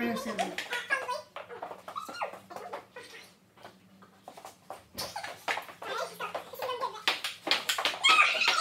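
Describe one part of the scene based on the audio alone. A ping pong ball clicks back and forth on a table and paddles.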